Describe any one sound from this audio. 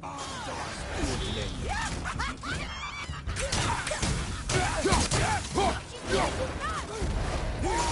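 Weapons strike and clash in a fight.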